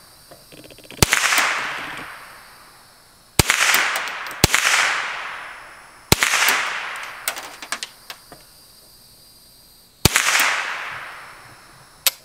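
A rifle fires loud shots outdoors, each echoing away.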